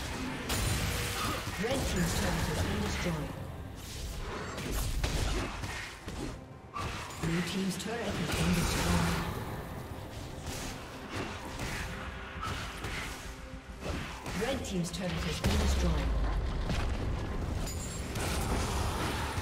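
Game spell effects crackle and clash in a busy battle.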